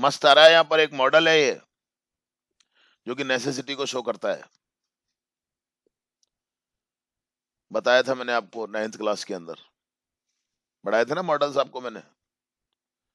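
A young man speaks calmly in short bursts over an online call.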